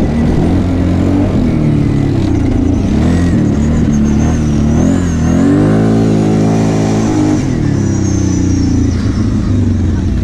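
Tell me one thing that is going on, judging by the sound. A quad bike engine revs as the quad rides along a dirt track.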